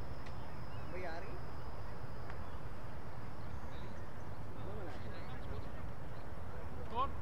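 Men shout to each other at a distance outdoors.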